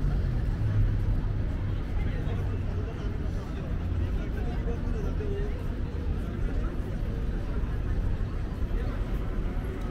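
Traffic hums steadily along a city street outdoors.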